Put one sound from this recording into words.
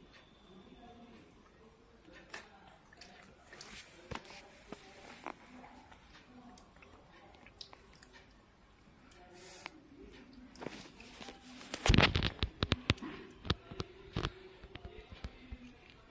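A small child chews and smacks their lips while eating.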